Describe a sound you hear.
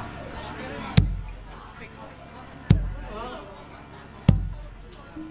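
Loud thuds ring out.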